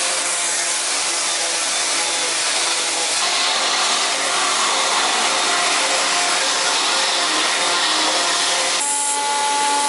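An electric sander whirs against wood.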